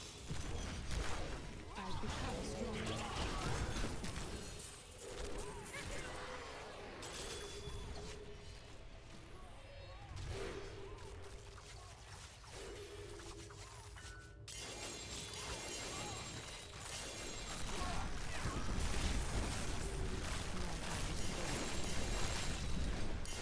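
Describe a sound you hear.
Game spells crackle and blast in combat.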